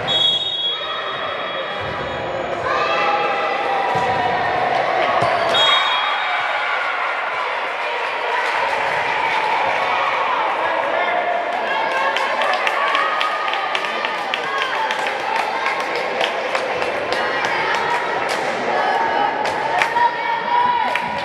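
Young women call out to each other across the court.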